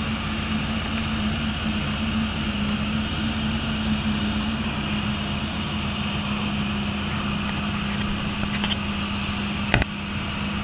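Wind rushes loudly past the aircraft.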